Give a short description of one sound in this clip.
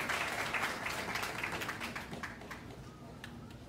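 An audience applauds and cheers in a large hall, then fades.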